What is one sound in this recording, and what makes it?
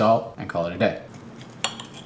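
A knife scrapes and cuts through food on a plate.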